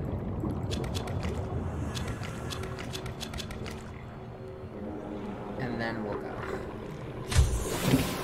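Water rumbles and swirls softly underwater.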